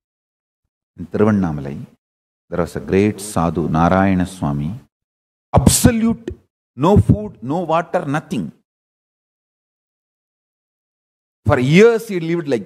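A man speaks calmly into a microphone, with animation.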